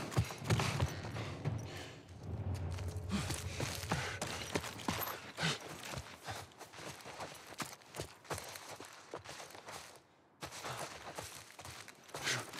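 Footsteps crunch through grass and over the ground.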